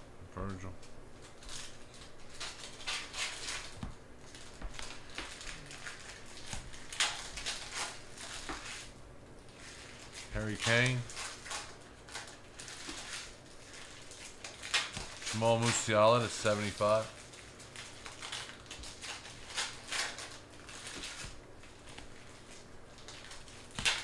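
Trading cards rustle and slide against each other as they are flipped through.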